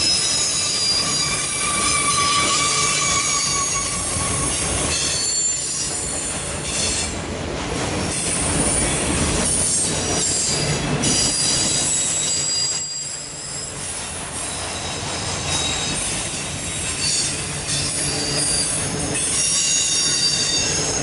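Steel wheels clatter over rail joints.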